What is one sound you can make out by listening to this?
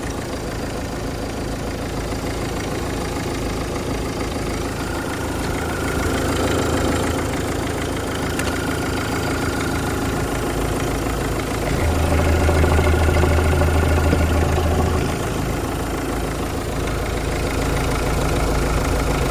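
An engine idles with a steady low hum.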